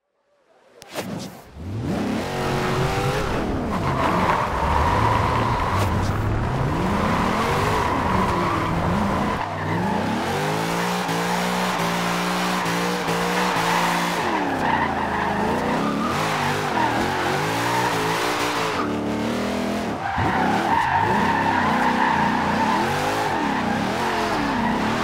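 A car engine revs hard, rising and falling in pitch as it shifts gears.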